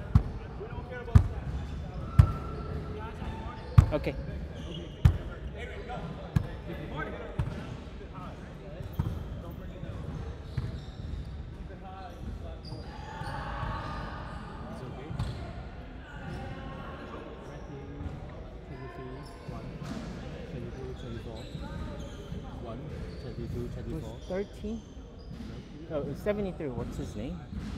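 Boys call out to each other in an echoing hall.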